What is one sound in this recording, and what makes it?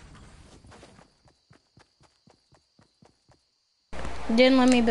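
Footsteps patter on grass as a game character runs.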